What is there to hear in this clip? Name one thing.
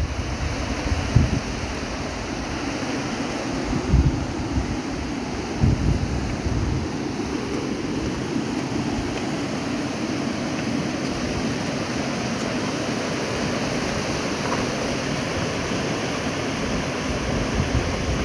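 Water rushes steadily over stones outdoors.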